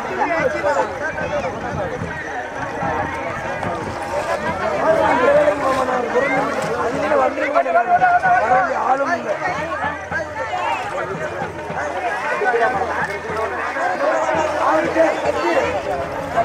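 A crowd of people chatters loudly.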